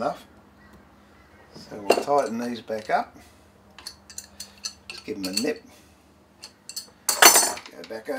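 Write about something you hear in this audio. Metal parts clink and tap as a vise is adjusted by hand.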